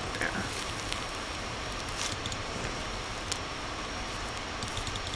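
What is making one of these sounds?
A mushroom is snapped off a log with a soft crack.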